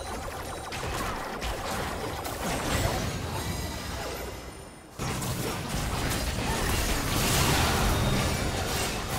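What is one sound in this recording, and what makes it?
Spell effects and weapon hits crackle and clash in a game battle.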